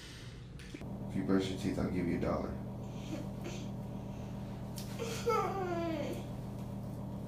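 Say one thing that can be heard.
A little boy whimpers nearby.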